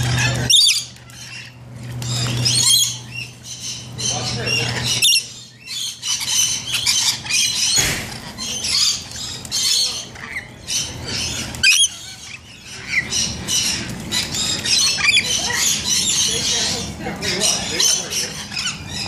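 Water trickles steadily into a pool.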